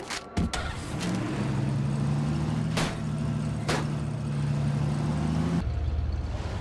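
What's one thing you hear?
A pickup truck engine roars as it drives fast.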